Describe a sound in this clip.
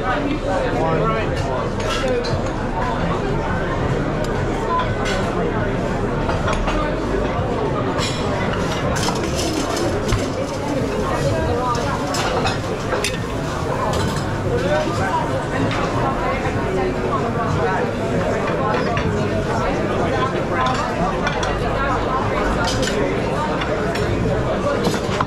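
A busy crowd chatters in a large room.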